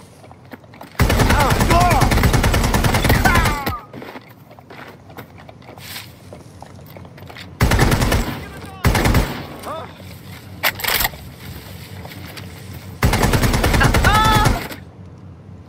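An automatic rifle fires in rapid bursts, close by.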